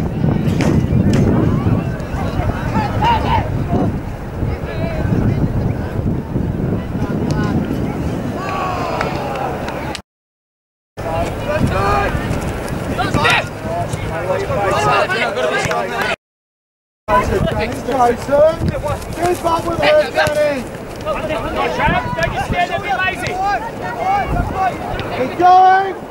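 Young men shout and call to each other at a distance outdoors.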